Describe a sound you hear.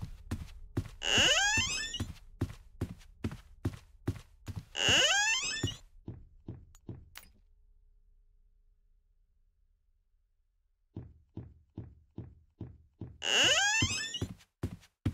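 A door creaks open with a screech.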